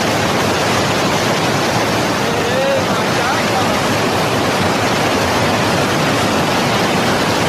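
A fast river rushes and roars over rocks.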